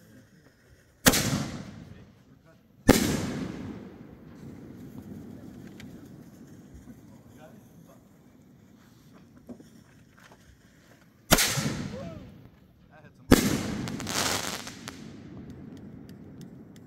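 Fireworks shells burst overhead with sharp booms that rumble away.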